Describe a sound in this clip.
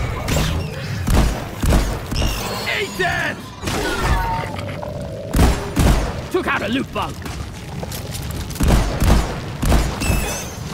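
A gun fires in loud bursts of shots.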